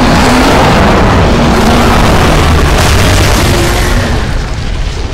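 A large creature roars and snarls loudly.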